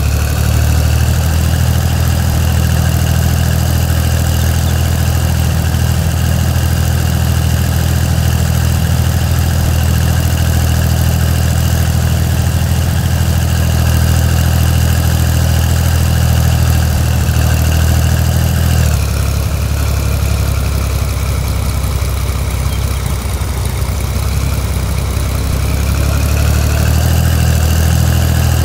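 A tractor engine chugs steadily, changing pitch as it slows near the middle.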